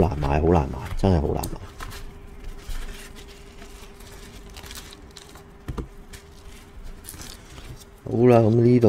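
Plastic card cases clack and rustle as they are handled.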